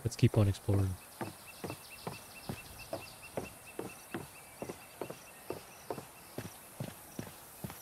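Footsteps thud steadily on wooden boards.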